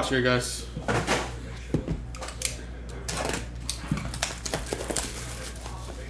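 Plastic wrap crinkles and rustles as it is torn off a box.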